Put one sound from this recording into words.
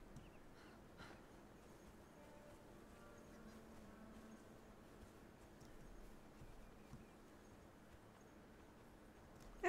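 Footsteps rustle through grass and then pad on sand.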